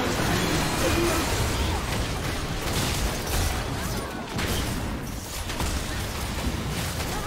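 Game spells crackle and burst during a fight.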